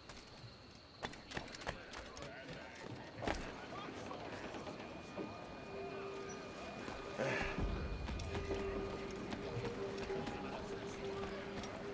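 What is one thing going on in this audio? Footsteps thud on a wooden deck.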